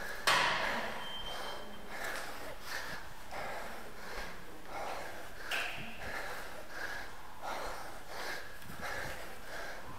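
Footsteps climb hard stairs in a steady rhythm, echoing around a stairwell.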